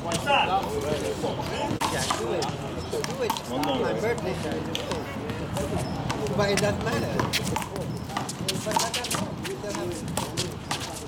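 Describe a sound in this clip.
A hand slaps a ball with a sharp clap.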